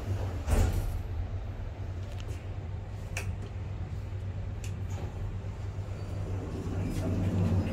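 An elevator hums steadily with a low drone.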